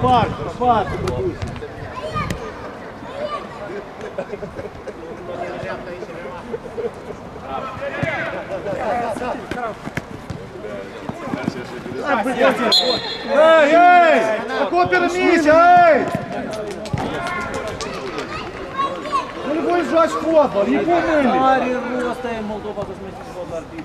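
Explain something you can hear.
Men shout and call out to each other across an open outdoor pitch.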